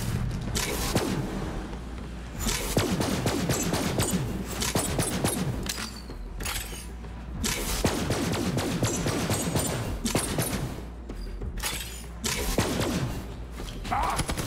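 Rapid gunfire crackles with explosions.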